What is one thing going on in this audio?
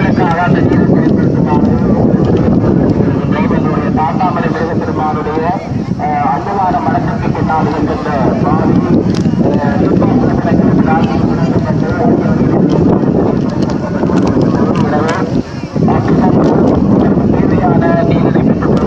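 A crowd of men, women and children chatters outdoors.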